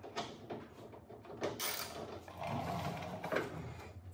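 A metal tailgate clanks as it is lowered.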